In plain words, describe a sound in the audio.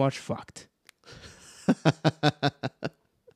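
Two men laugh heartily close to microphones.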